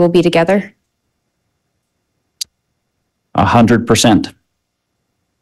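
A woman speaks briefly into a microphone, heard through an online call.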